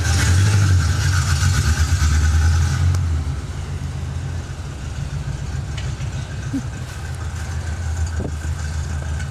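A car engine rumbles loudly close by, then fades as the car drives away.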